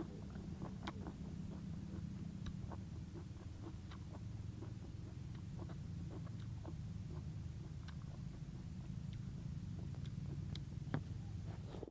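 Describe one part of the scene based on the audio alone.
Chopsticks click and scrape against a plastic plate.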